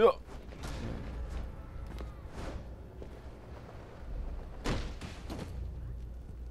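Heavy footfalls thud as a figure leaps and lands.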